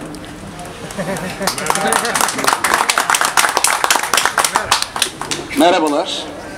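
Hands clap in applause.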